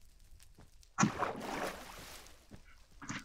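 Water splashes loudly.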